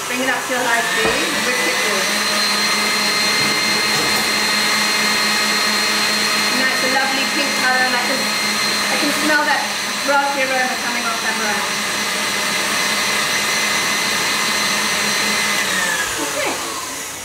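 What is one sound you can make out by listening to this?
An electric stand mixer whirs steadily, speeding up at the start and slowing down at the end.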